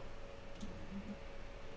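Small plastic parts click.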